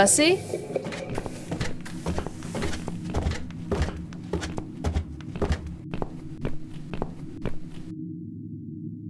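Footsteps climb creaking wooden stairs.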